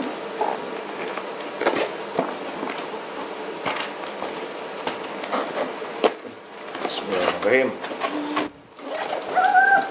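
Cardboard rustles and scrapes as a box is handled and opened.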